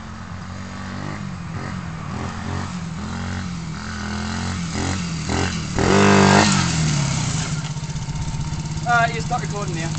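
A small motorbike engine buzzes and revs loudly nearby.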